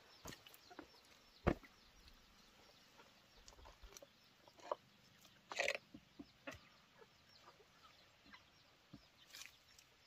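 Hands scrape and pat wet mud.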